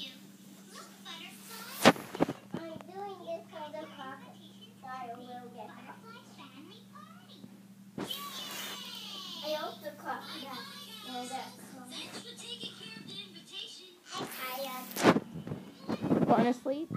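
A television plays softly in the background.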